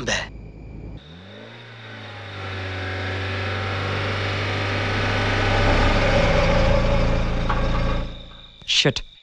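A car engine hums as a car approaches and grows louder.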